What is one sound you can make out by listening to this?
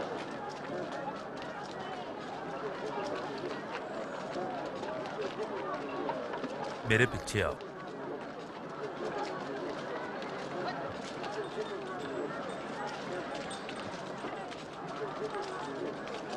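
A crowd murmurs softly in the background.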